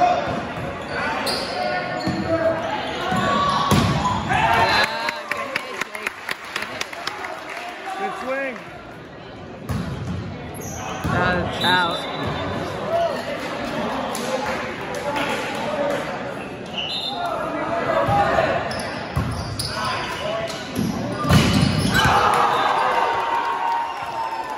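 Young spectators talk and cheer, echoing in a large hall.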